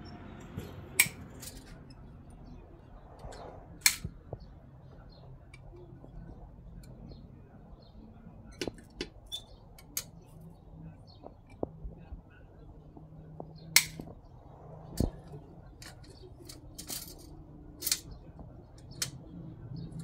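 Metal parts clank and knock sharply close by.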